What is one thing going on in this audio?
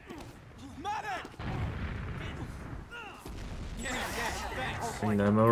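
Explosions boom and rumble in quick succession.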